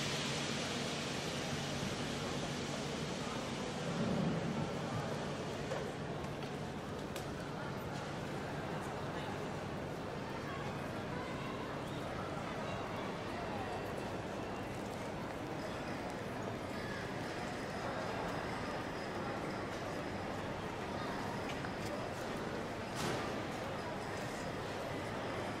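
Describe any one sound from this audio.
A crowd murmurs and footsteps echo in a large, echoing hall.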